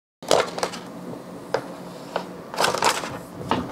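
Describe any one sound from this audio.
A thin plastic sheet crinkles and rustles as it is handled.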